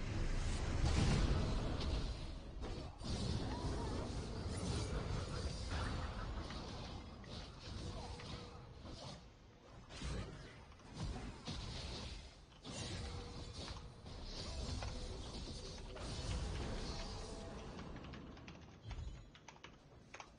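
Game weapons clash and hit repeatedly.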